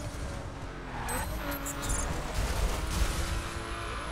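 Car tyres screech through a sliding turn.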